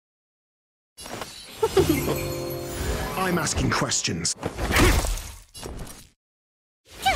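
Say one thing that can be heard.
Magical attacks whoosh, shimmer and crackle in bursts.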